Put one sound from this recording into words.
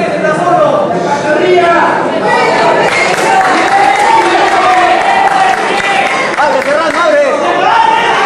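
A crowd cheers and shouts loudly in a large hall.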